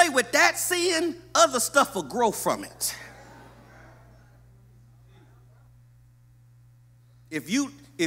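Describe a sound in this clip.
A man preaches forcefully into a microphone in a large echoing hall.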